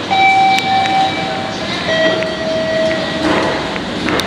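An escalator hums and rattles steadily in an echoing underground passage.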